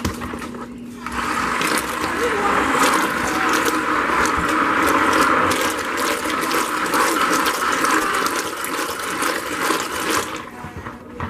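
An electric stick blender whirs as it mixes a thick liquid.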